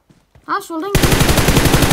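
Rapid gunfire rattles in a loud burst.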